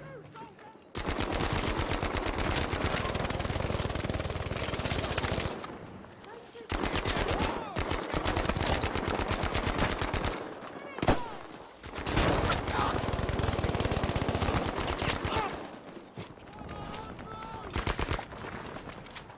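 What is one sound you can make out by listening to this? A submachine gun fires long rapid bursts.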